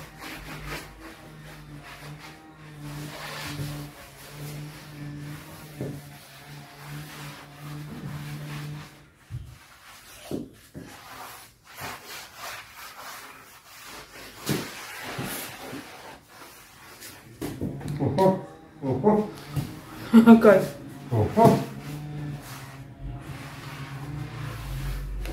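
A man wipes a door frame with a cloth.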